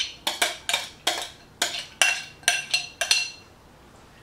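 Chunks of food drop and tap into a glass bowl.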